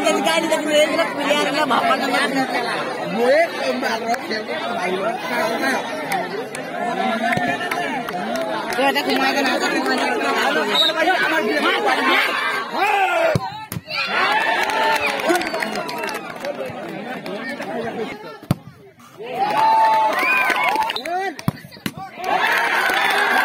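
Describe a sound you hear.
A large crowd outdoors chatters and shouts excitedly.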